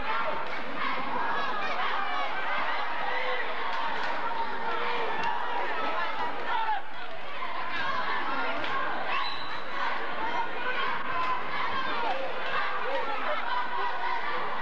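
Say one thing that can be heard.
A large crowd chatters and cheers in an echoing gym.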